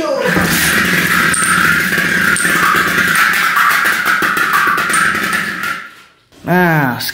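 Small metal pieces spin and rattle loudly in a metal pan, then stop.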